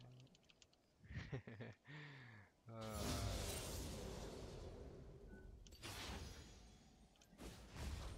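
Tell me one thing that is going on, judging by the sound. Video game combat effects whoosh and crash.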